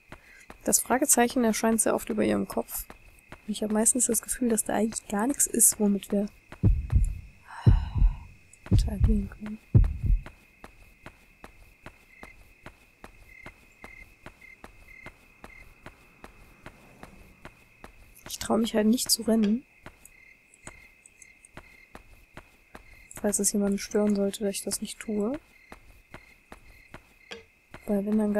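Footsteps tap steadily on hard pavement.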